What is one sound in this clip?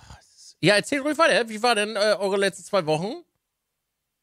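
A man speaks with animation into a close microphone over an online call.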